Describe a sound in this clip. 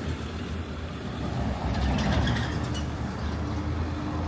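A pickup truck drives past close by.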